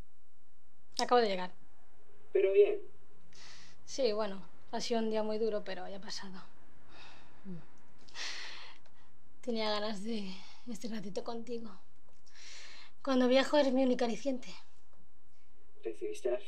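A young woman speaks softly and warmly into a headset microphone, close by.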